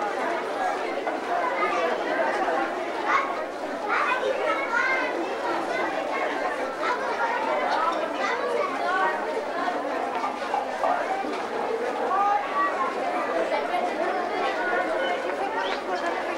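A crowd of men and women chatter together nearby.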